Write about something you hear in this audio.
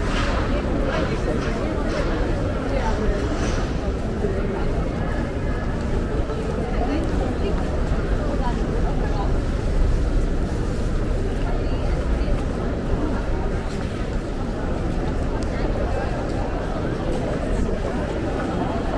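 Footsteps tap on paving stones nearby.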